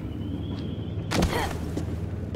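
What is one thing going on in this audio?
A heavy boot thuds on wooden planks.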